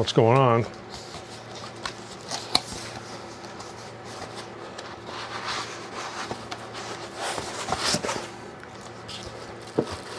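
Cardboard flaps rustle and scrape as a box is opened.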